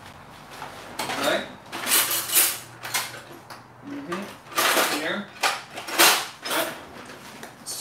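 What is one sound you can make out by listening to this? Metal utensils clatter in a drawer.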